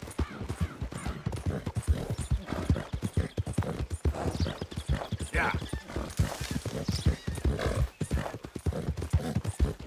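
Horse hooves pound steadily on a dirt trail at a gallop.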